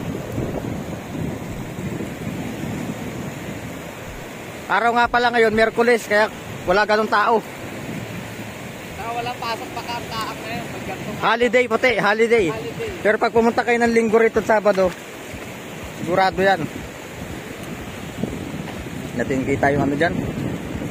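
Small waves wash and lap against the shore.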